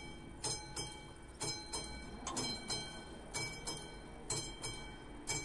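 Crossing barriers lower with a faint motor hum.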